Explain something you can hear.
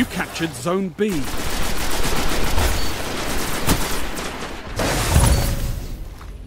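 Gunfire rings out in short bursts.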